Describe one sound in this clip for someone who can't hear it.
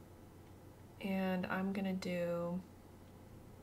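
A young woman speaks briefly into a microphone.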